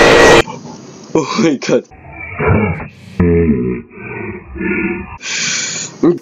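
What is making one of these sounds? A young man screams in fright close to a microphone.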